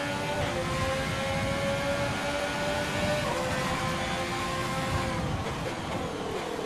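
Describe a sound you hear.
A Formula One racing car engine screams at high revs.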